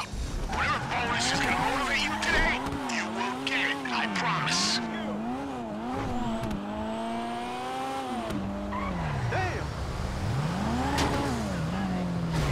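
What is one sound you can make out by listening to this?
A car engine revs up and down as the car drives off.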